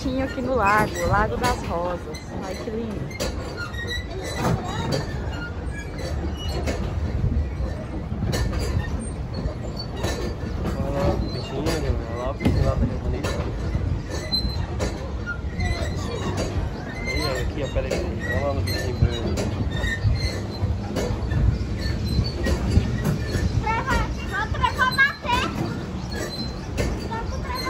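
Water laps and splashes against a moving boat's hull.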